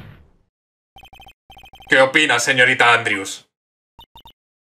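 Short electronic blips tick rapidly, one after another.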